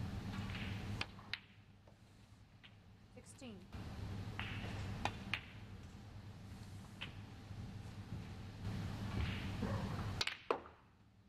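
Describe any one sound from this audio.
A cue strikes a snooker ball with a sharp click.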